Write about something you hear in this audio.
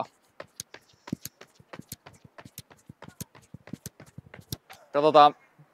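Running shoes patter quickly on a rubber track outdoors.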